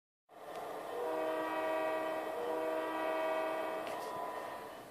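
A train horn sounds in a long, steady blast.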